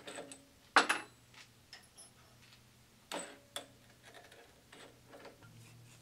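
Metal parts click and clink as a drill chuck is tightened by hand.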